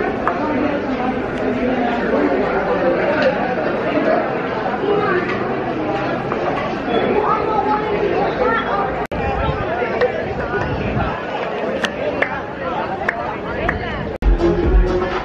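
A crowd of men and women chatter in the background.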